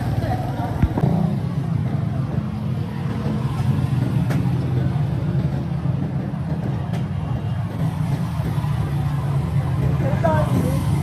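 A small motorcycle rides ahead with its engine humming.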